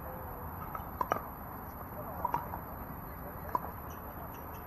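Paddles pop against a plastic ball a few times, outdoors.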